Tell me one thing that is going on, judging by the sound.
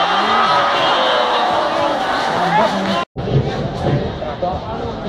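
A large crowd cheers and chants in the open air.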